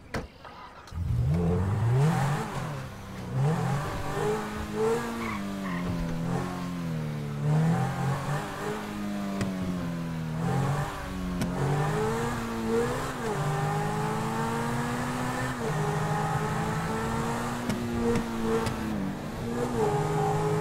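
A sports car engine revs hard, its pitch climbing and dropping with each gear change.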